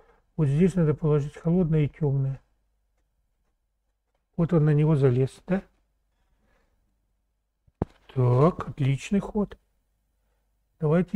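A middle-aged man speaks calmly and closely, in short phrases with pauses.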